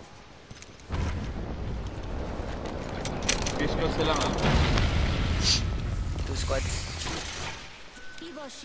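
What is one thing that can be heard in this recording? A smoke canister hisses loudly as thick smoke billows out.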